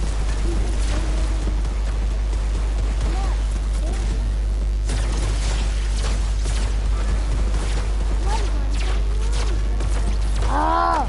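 Video game gunfire crackles in rapid bursts.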